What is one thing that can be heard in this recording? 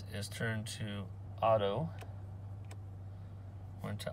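A switch lever clicks as it is turned.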